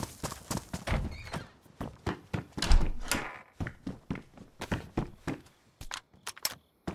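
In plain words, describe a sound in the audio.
Footsteps thud and creak on a wooden floor.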